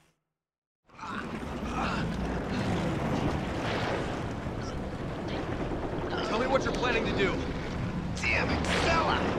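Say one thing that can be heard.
Wet flesh squelches as a creature writhes.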